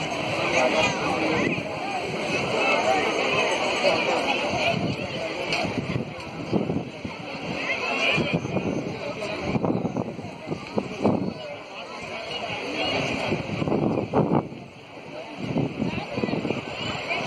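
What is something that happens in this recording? Waves wash against rocks along the shore.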